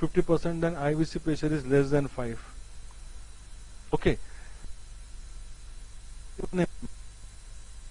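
An elderly man speaks calmly through a microphone, lecturing in short phrases.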